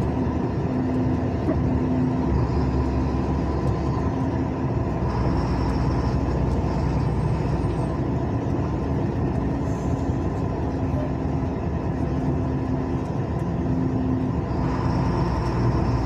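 Tyres roll and hum on asphalt.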